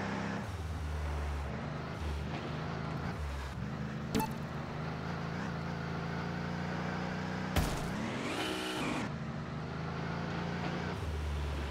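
A truck engine rumbles and revs unevenly.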